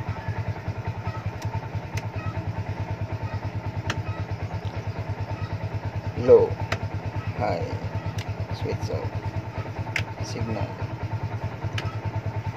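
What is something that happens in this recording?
A stalk switch clicks as it is flicked.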